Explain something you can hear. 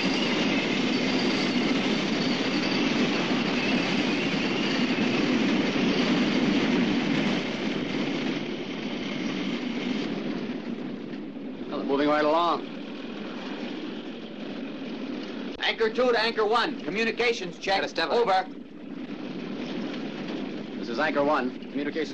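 A jeep engine drones.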